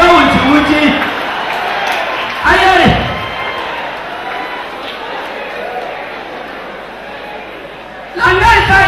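A crowd laughs and murmurs.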